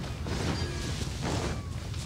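A sharp magical whoosh sweeps past.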